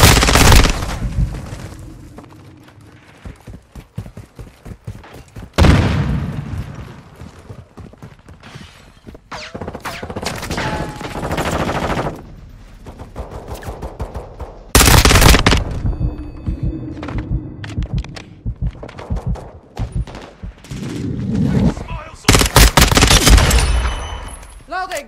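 Rapid gunfire rattles in loud bursts.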